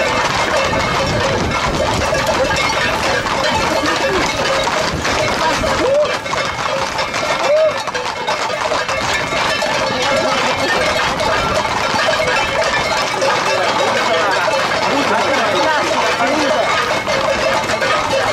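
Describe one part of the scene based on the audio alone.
Hooves clatter on the road as a herd of horses trots past.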